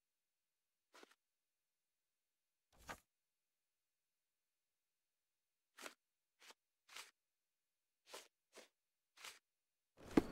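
Soft clicks sound several times.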